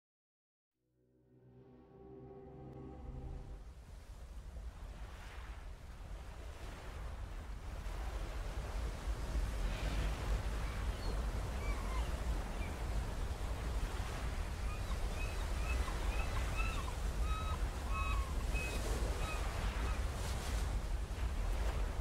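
Ocean waves wash and rumble steadily.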